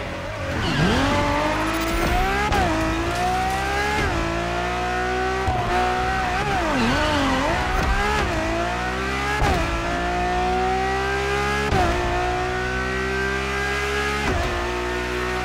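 A sports car engine roars loudly, revving up and dropping in pitch with each gear change.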